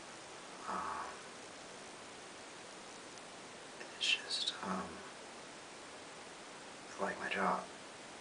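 A young man speaks calmly in short phrases close by.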